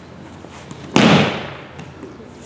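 A body lands on a mat with a heavy thud.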